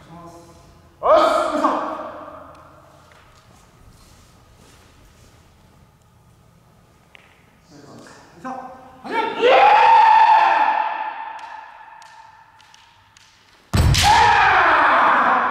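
Young men shout loud, fierce cries that echo around a large hall.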